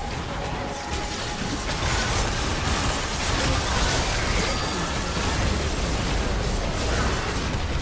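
Magic blasts and clashing weapons crackle rapidly in a chaotic fight.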